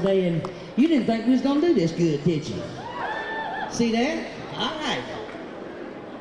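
An elderly woman sings into a microphone, heard in a large hall.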